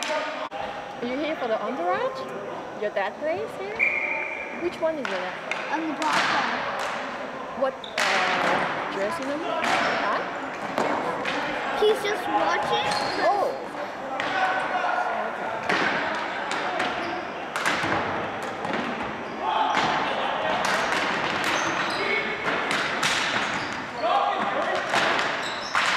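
Hockey sticks clack against a plastic ball in an echoing gym.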